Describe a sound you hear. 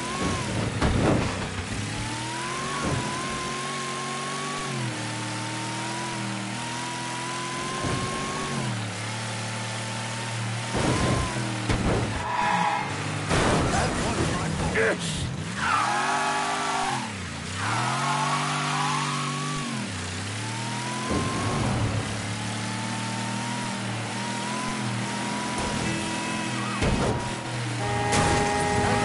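A car engine hums steadily and revs up and down as it drives.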